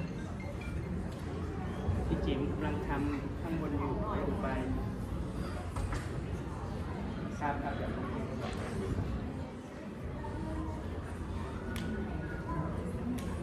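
A crowd of people chatters softly in a large echoing hall.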